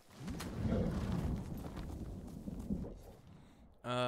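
A horse gallops with hooves thudding on the ground.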